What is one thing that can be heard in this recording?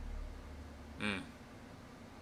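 A young man murmurs a short word softly and close by.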